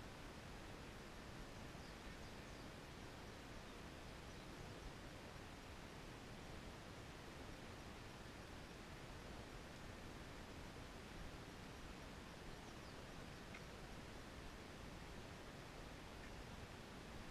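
Wind rustles leaves outdoors.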